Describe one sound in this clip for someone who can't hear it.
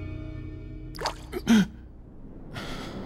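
A young man gasps sharply in pain.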